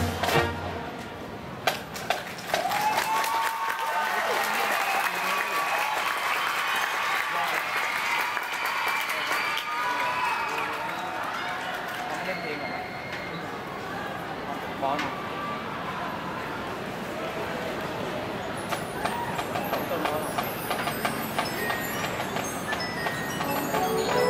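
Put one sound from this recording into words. A marching band plays brass and drums outdoors.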